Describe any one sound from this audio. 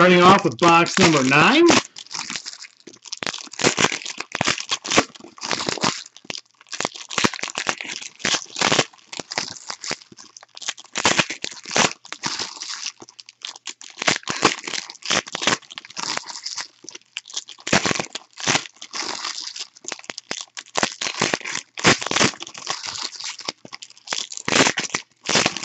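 Foil card wrappers crinkle and tear close by.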